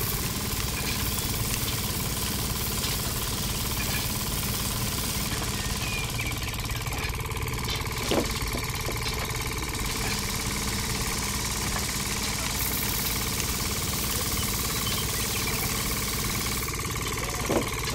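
Grain patters onto a plastic tray.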